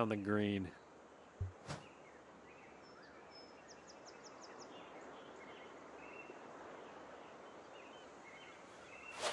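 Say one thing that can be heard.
Waves wash softly against a shore in steady light wind.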